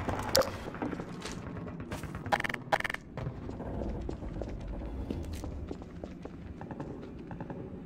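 Footsteps scuff slowly across a hard floor.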